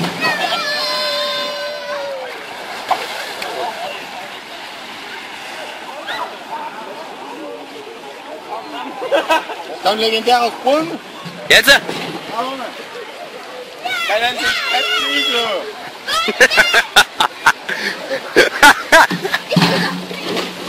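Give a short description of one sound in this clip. Young people shout and chatter nearby outdoors.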